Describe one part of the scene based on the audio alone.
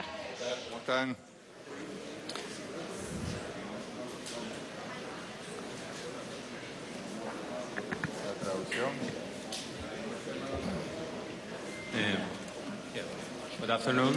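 Several men and women murmur and talk quietly in a large room.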